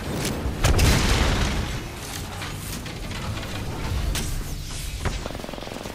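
Electric crackling and zapping sounds burst out.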